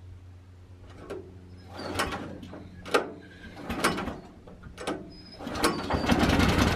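A man yanks a starter cord on an engine several times.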